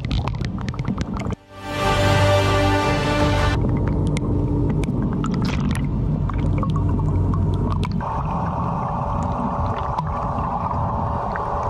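Bubbles gurgle and rush underwater.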